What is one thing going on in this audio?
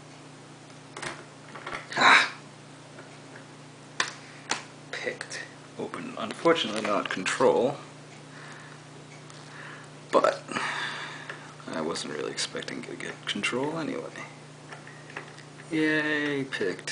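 A lock cylinder clicks and rattles as it is handled.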